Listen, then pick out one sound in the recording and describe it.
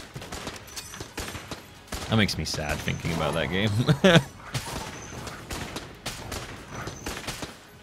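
Video game guns fire in rapid bursts.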